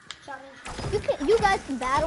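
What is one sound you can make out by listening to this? A pickaxe strikes a tree in a video game.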